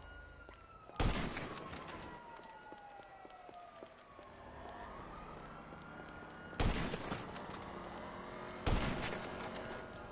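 A sniper rifle fires sharp, echoing shots.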